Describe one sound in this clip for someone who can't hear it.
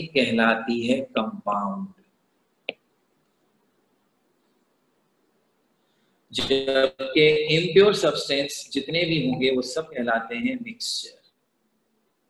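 A middle-aged man speaks calmly over an online call, explaining.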